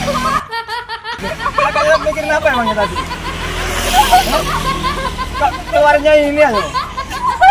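Young women laugh loudly close by.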